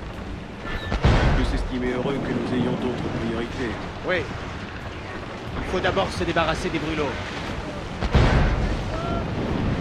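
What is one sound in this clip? Mortar shells explode with heavy booming blasts.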